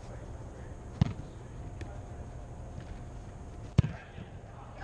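A football is kicked with sharp thuds in a large echoing hall.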